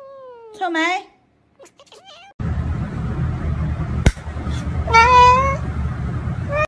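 A cat meows loudly up close.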